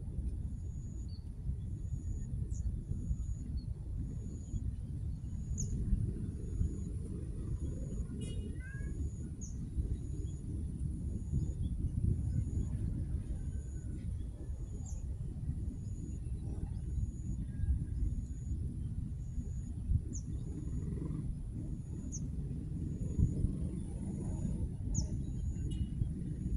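A cat meows softly nearby.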